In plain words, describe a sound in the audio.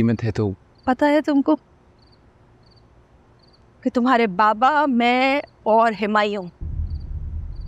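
A middle-aged woman speaks nearby, pleading with emotion.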